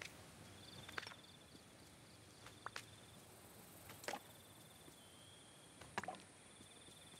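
Short bright pops ring out as items are picked up.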